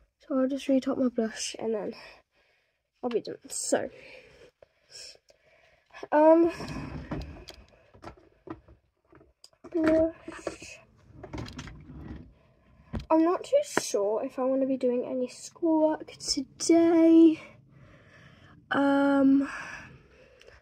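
A young girl talks with animation, close to a microphone.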